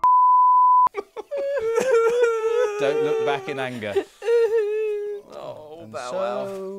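A cheerful video game melody plays on bright, bouncy tones.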